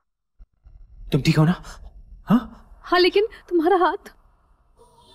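A young man speaks forcefully.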